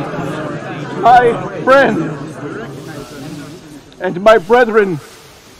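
An elderly man calls out loudly in an echoing voice.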